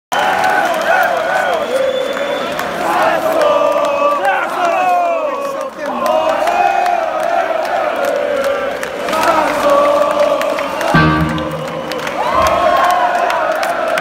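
A man sings loudly through speakers in a large hall.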